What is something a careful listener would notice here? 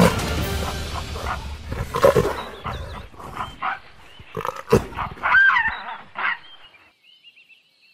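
Dry grass rustles as animals struggle.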